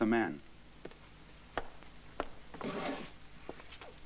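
Footsteps cross a wooden floor.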